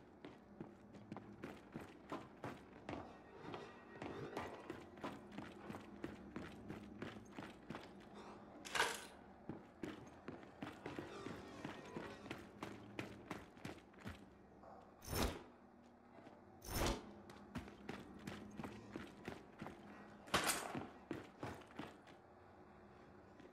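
Heavy armoured footsteps clank steadily on a hard floor.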